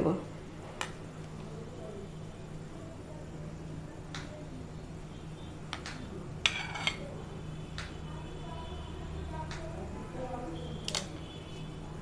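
A metal ladle clinks against a pan and a bowl.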